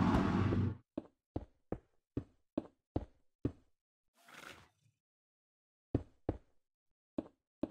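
Stone blocks thud softly as they are placed one after another.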